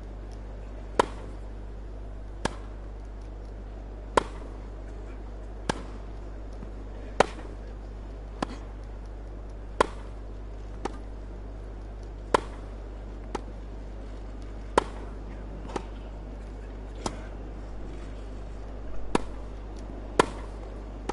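Tennis rackets strike a ball back and forth in a steady rally.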